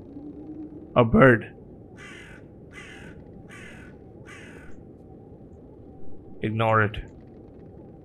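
A crow caws loudly.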